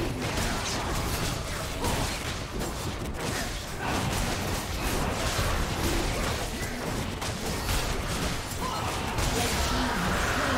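A large winged beast roars.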